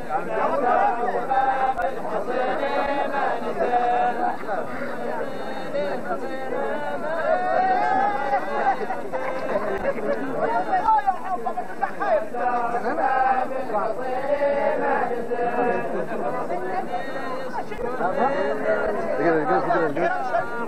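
A group of men chant together loudly outdoors.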